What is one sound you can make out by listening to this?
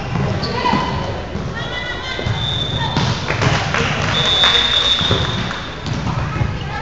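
Players call out to each other across the court.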